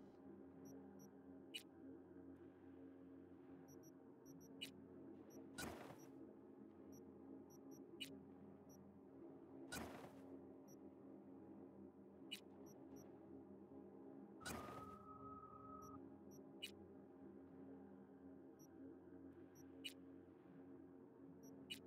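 Soft electronic clicks sound now and then.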